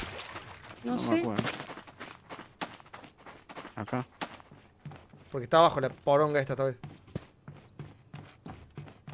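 Footsteps creak on wooden floorboards.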